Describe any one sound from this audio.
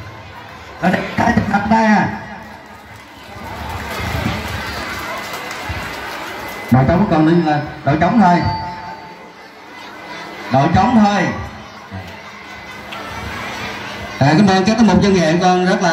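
A man speaks loudly through a loudspeaker in short bursts.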